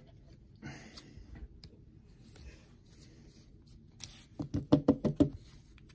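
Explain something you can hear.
A card slides into a stiff plastic holder with a soft scrape.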